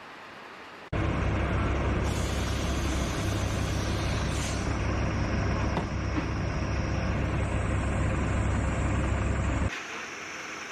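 A large truck engine idles with a steady low rumble.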